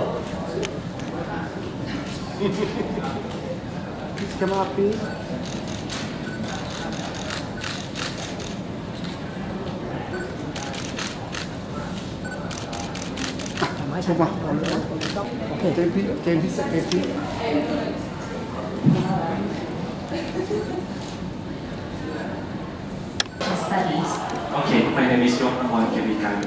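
A crowd of men and women chatter and murmur nearby.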